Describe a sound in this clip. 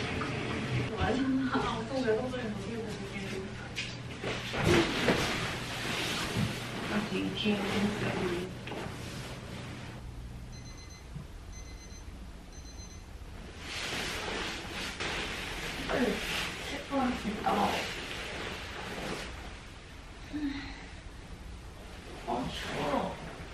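A young woman talks quietly nearby.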